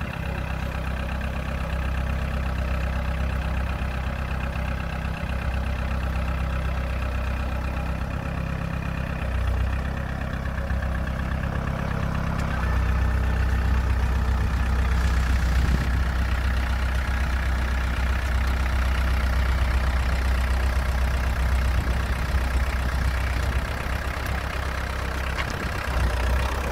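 A small engine runs steadily nearby, growing louder partway through.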